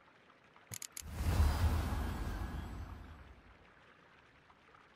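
A card lands on the board with a deep, swelling whoosh that slowly fades.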